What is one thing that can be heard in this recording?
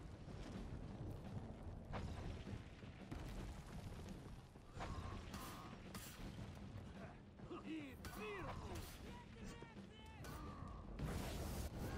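Heavy footsteps thud on wooden planks and stone.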